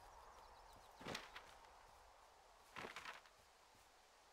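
A paper map rustles as it is folded and unfolded.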